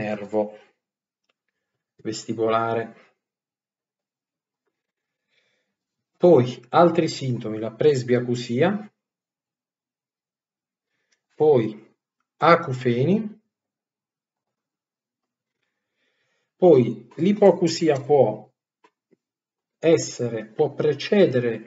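A young man speaks close to a microphone in short bursts, with pauses between.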